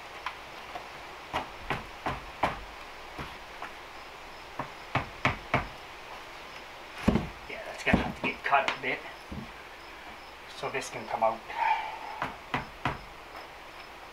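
A wooden door frame creaks and knocks as it is pushed.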